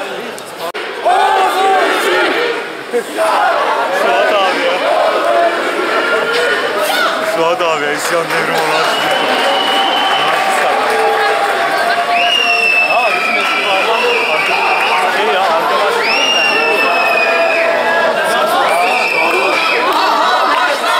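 Many people in a crowd chant and shout loudly together.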